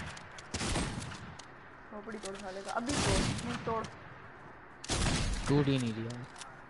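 Gunshots fire in quick, loud bursts.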